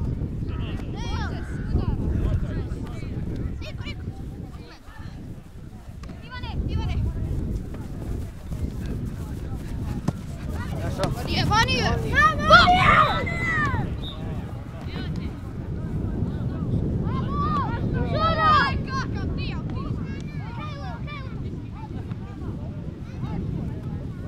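Young boys shout to each other outdoors, some close and some farther away.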